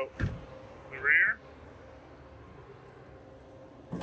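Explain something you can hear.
A van's rear door clunks open.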